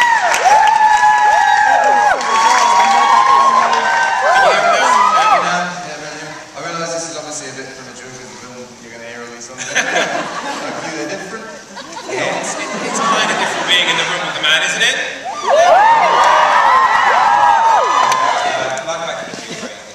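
A second young man speaks and jokes through a microphone over loudspeakers.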